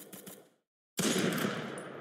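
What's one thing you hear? A sniper rifle fires a loud shot.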